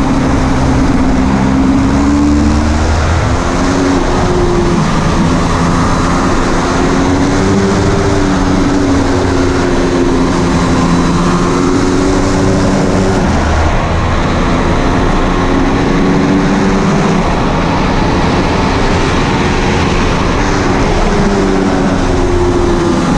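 A motorcycle engine roars loudly close by, its pitch rising and falling as it revs through the gears.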